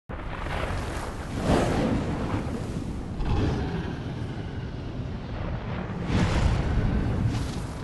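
Strong wind roars and gusts in loud surges.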